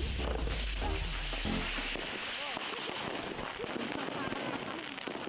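Fireworks whistle as they shoot through the air.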